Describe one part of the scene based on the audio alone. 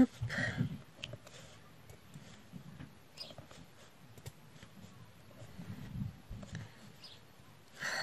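A pen tool taps softly, with tiny clicks.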